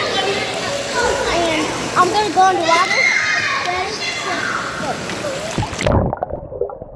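Water splashes and sloshes in a pool.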